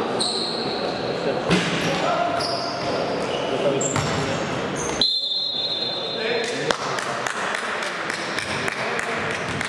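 A basketball bounces on a hard floor, echoing around a large hall.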